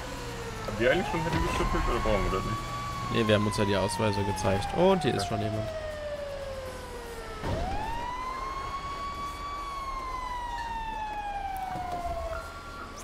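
A fire engine siren wails, rising and slowly falling over and over.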